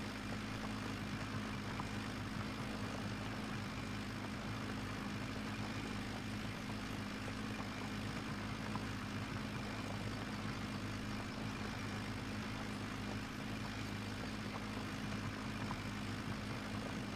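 A plough scrapes and rumbles through soil.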